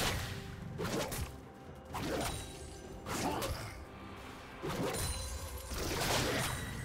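Game spell blasts and hits burst in quick succession.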